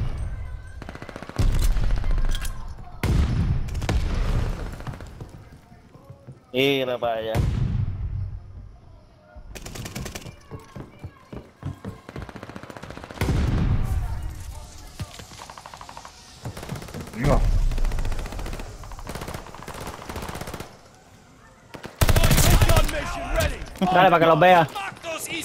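Gunfire bursts out in short, loud rounds.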